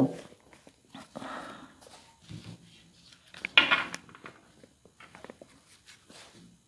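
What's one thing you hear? Playing cards shuffle and slap softly.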